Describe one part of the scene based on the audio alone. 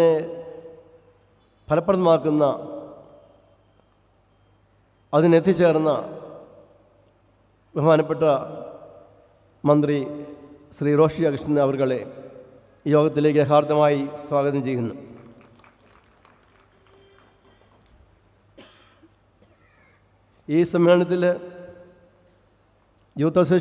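A man speaks over a loudspeaker in a large echoing hall, in short phrases with pauses.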